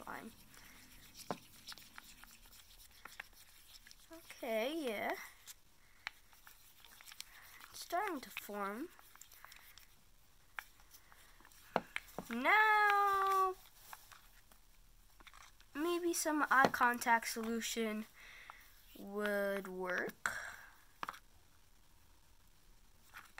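A stick stirs and squishes thick slime.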